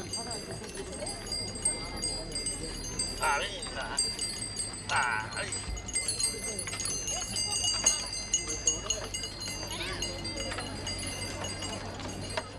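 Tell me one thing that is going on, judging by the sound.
Oxen hooves clop on the road.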